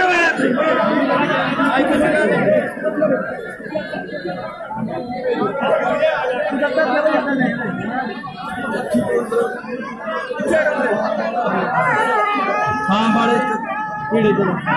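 A dense crowd of men talks and shouts loudly all around, close by.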